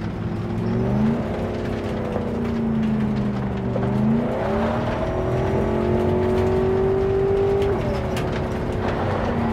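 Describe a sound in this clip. Tyres rumble on a dirt road.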